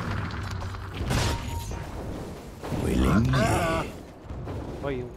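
Game combat sound effects clash and whoosh.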